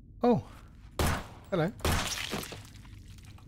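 A pistol fires twice in quick succession.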